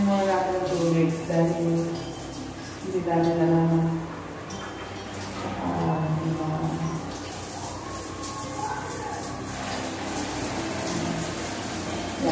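Water hisses as it sprays from a hand-held nozzle.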